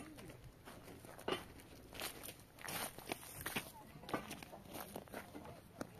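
A child's footsteps crunch on stony ground.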